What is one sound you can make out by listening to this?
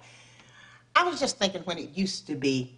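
A woman speaks briskly, close by.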